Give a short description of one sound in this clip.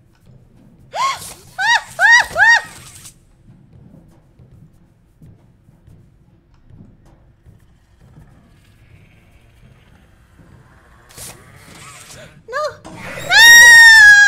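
A young woman shrieks in high, rising squeals into a microphone.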